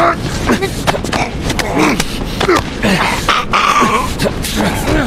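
Fists strike a body in heavy blows.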